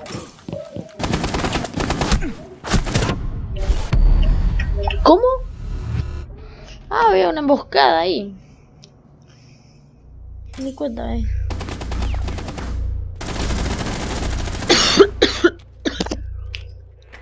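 Rifle gunfire rings out in loud, rapid bursts.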